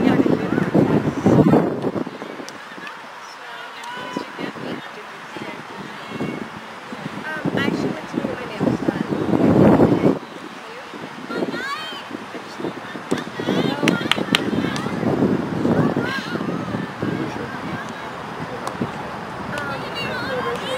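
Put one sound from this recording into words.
Field hockey sticks clack against a ball.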